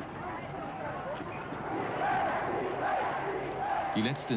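A large crowd chants and cheers in unison.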